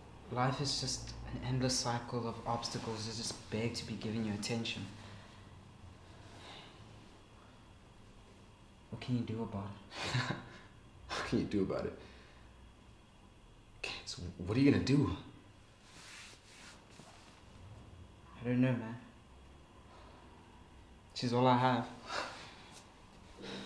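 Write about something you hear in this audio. A young man speaks softly and close by, in short bursts with pauses.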